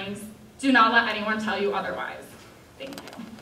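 A young woman speaks into a microphone in an echoing hall.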